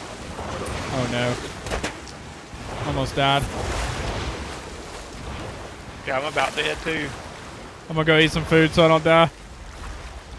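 A man speaks into a close microphone in short, lively bursts.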